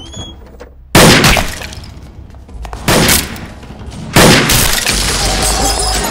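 Gunshots bang loudly.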